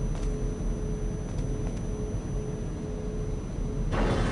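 A heavy wooden crate scrapes along the floor.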